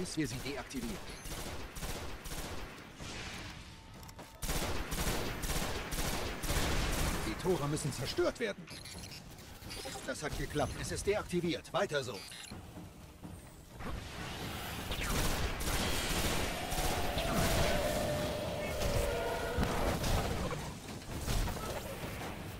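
A heavy gun fires rapid bursts of shots.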